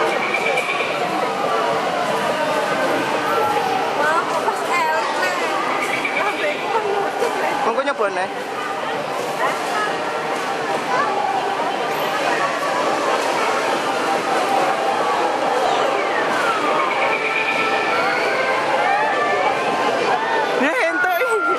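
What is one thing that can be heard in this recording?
Arcade machines play busy electronic tunes and bleeps all around.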